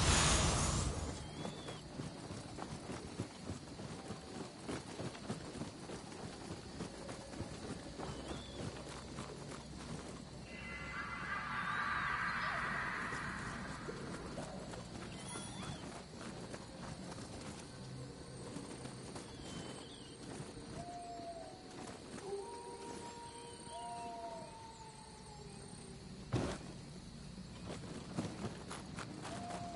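Quick footsteps patter over wood and stone.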